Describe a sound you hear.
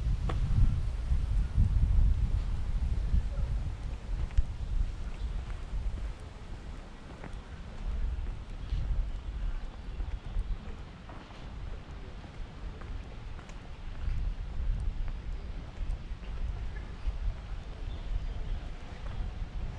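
Wind rumbles against the microphone outdoors, rising and falling in gusts.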